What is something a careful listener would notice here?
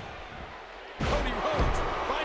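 A heavy body slams onto a wrestling ring mat with a loud thud.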